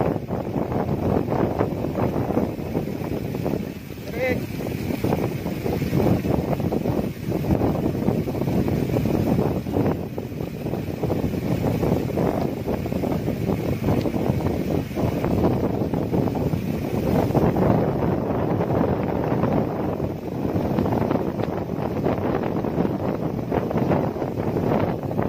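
Mountain bike tyres roll over a concrete road.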